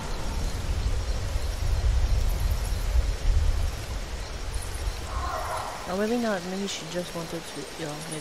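A large lizard rustles through undergrowth.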